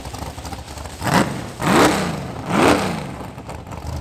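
A car engine revs in short, sharp bursts.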